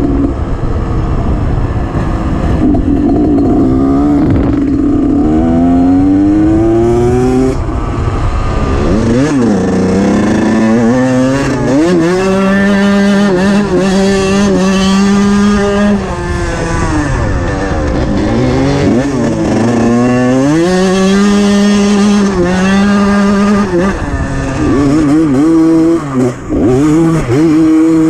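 Wind buffets loudly against the rider.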